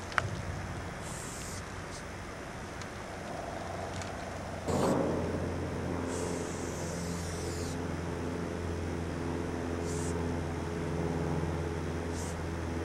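A spray paint can hisses in short bursts.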